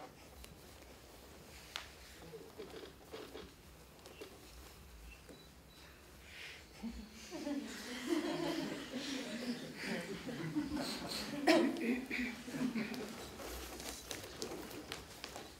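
Bare feet thump and slide on a wooden floor.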